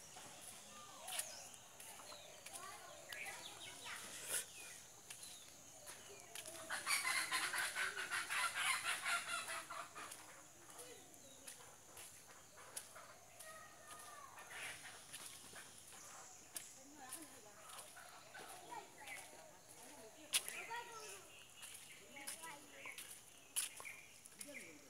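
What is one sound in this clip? Footsteps squelch slowly on a wet, muddy path.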